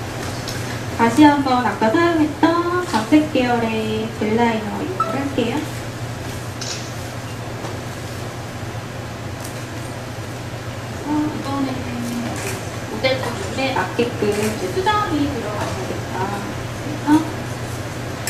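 A woman speaks calmly through a close microphone.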